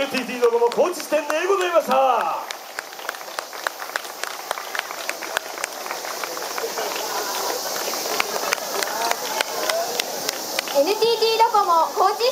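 Wooden clappers clack sharply and rhythmically.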